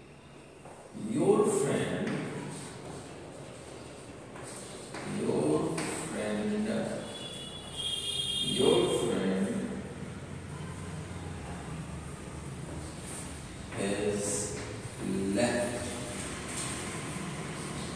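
A man speaks calmly and clearly, as if teaching.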